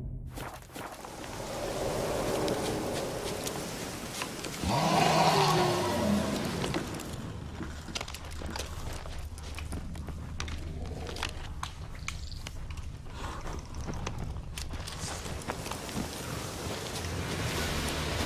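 Footsteps crunch on leaves and grass outdoors.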